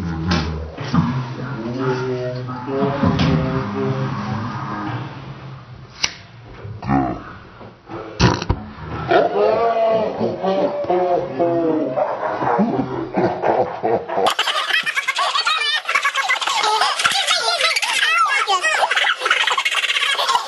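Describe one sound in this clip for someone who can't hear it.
A young man talks and laughs loudly nearby.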